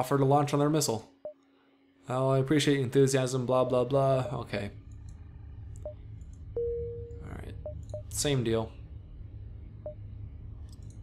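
Short electronic beeps sound as menu options are picked.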